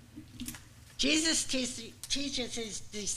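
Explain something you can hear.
An older woman begins reading out calmly through a microphone.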